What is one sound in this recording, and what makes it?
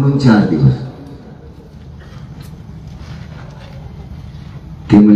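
A man speaks loudly and with animation into a microphone, heard through loudspeakers.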